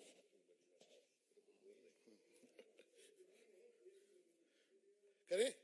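Men laugh softly.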